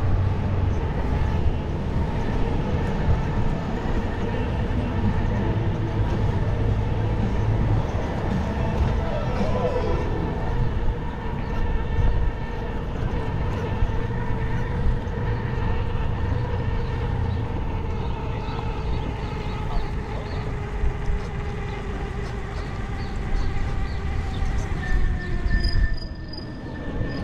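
A bicycle motor whines steadily.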